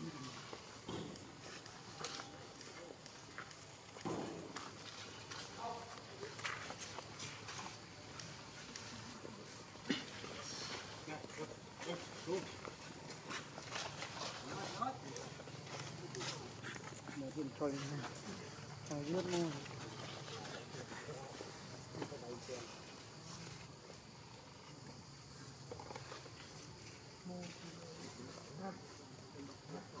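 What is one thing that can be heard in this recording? Dry leaves rustle and crackle under small feet.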